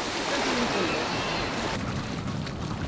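Boats rush through breaking waves.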